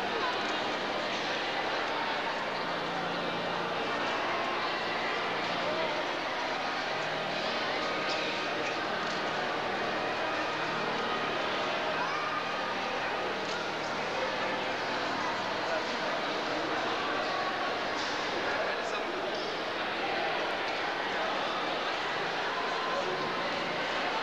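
A crowd of men and women murmurs and chatters in a large echoing hall.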